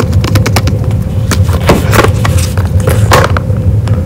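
A cardboard lid slides off a box with a soft scrape.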